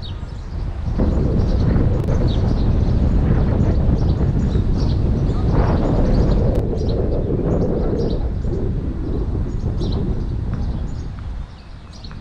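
Wind gusts outdoors, rumbling loudly and then easing.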